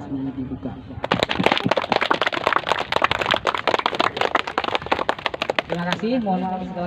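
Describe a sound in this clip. A group of young people clap their hands.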